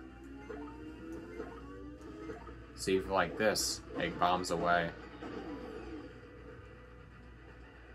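Cheerful video game music plays from a television speaker.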